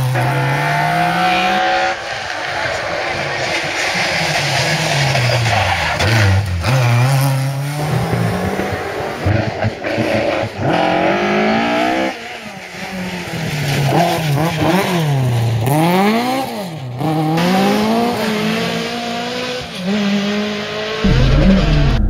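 A rally car engine revs hard and shifts gears as the car speeds past.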